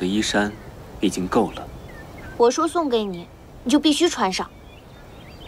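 A young woman speaks firmly.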